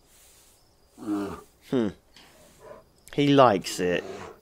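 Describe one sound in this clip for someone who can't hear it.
A large bear lets out deep, rumbling moans close by.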